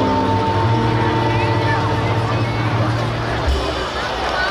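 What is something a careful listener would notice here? An electric guitar plays along with a band.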